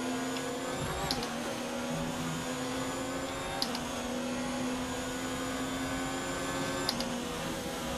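Gear shifts click sharply as a racing car speeds up.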